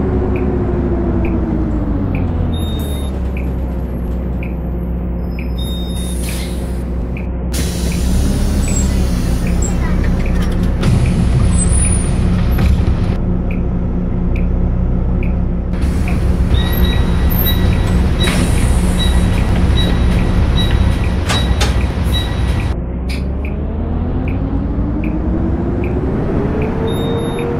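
A bus diesel engine winds down to a low idle, then revs up again as the bus pulls away.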